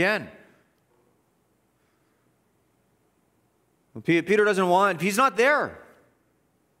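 A man speaks with emphasis into a microphone in a large, echoing room.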